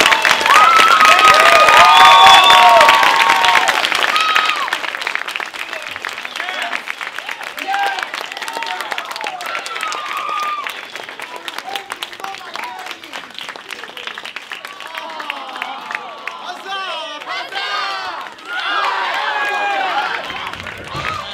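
An audience applauds loudly in an echoing theatre.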